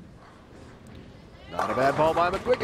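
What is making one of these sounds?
A bowling ball rolls down a wooden lane.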